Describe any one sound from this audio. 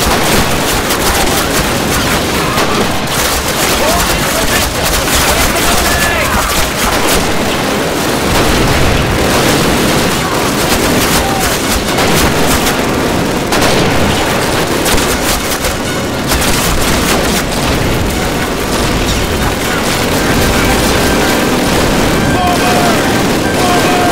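Rifle shots and gunfire crack in a battle.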